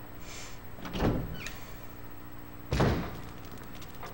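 A heavy door opens with a low thud.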